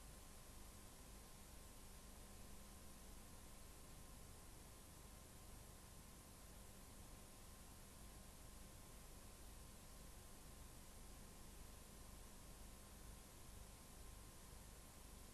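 Loud static hisses steadily.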